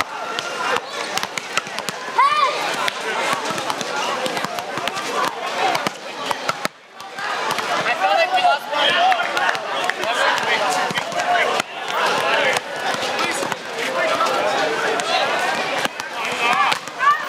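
A crowd of onlookers chatters and calls out outdoors.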